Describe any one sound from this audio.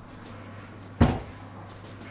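A pot clanks against a wooden table.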